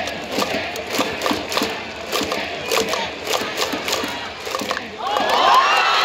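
A large stadium crowd claps and chants in rhythm.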